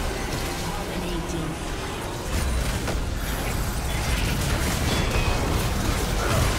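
Spell effects whoosh and crackle.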